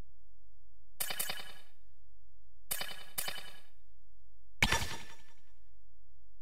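Short electronic menu chimes sound as a selection moves between options.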